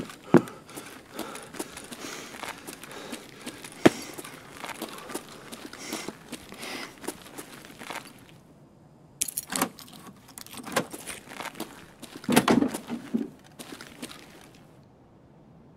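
Footsteps crunch over a gritty floor.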